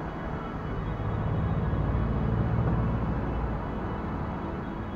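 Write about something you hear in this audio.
A car drives past on the street nearby.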